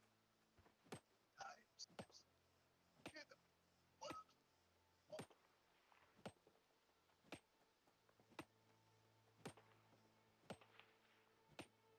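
A pickaxe strikes rock in sharp, regular blows.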